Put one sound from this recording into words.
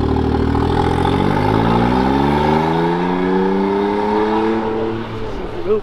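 A small car engine revs up and pulls away, its pitch rising.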